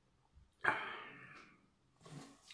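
A man sips wine from a glass.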